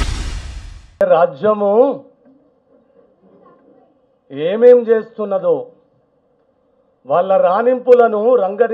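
An elderly man speaks slowly and forcefully into a microphone.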